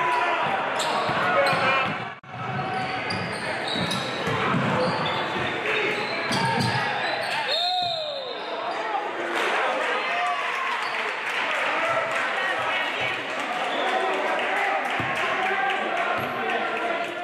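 A crowd of spectators chatters and cheers in the distance.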